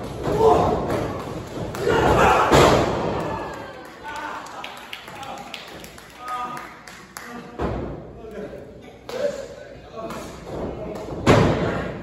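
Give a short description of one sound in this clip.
A small crowd shouts and cheers in an echoing room.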